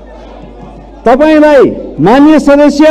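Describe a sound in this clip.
A crowd of men shout slogans loudly in unison.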